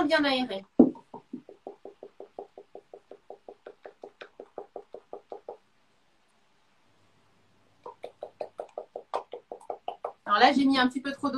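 A wooden spoon stirs quickly in a glass, tapping in a steady rhythm.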